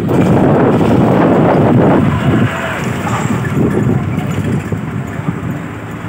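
A bus passes close by.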